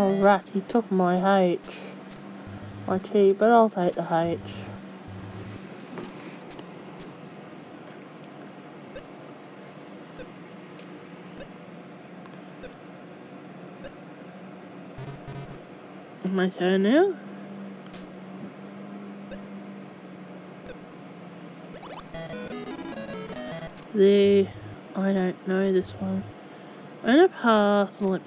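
Electronic game jingles and beeps play in short bursts.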